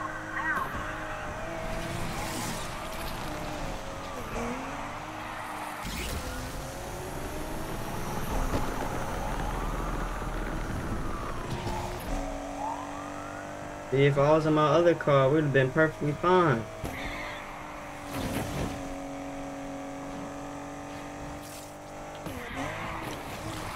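A car engine revs and roars steadily, rising and falling in pitch.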